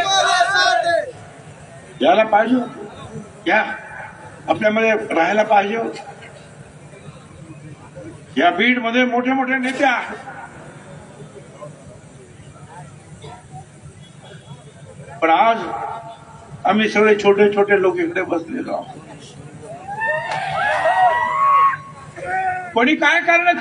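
An elderly man speaks forcefully into a microphone over loudspeakers outdoors, in bursts with pauses.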